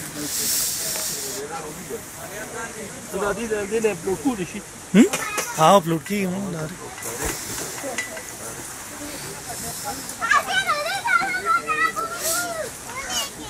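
Young girls chatter in high voices.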